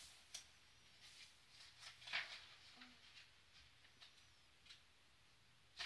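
Paper pages rustle under a hand.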